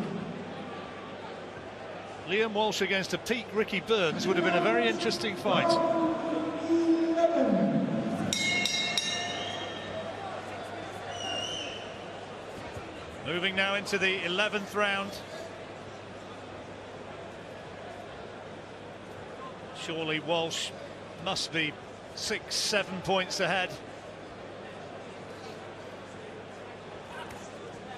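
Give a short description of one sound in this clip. A large crowd murmurs in a big arena.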